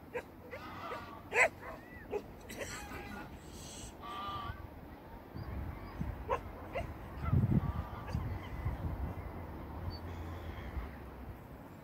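Birds chirp and call near the water.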